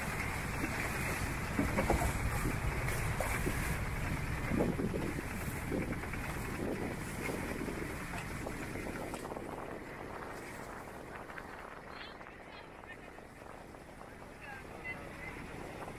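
A boat engine rumbles low and steadily.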